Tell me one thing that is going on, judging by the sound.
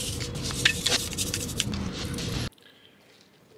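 A stiff brush scrubs against metal.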